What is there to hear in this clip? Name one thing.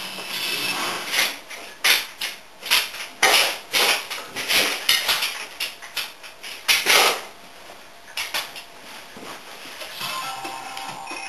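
Sharp beats and bursts of sound come from a television speaker.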